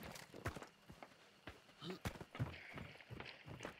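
Hands and feet knock on a wooden ladder during a climb.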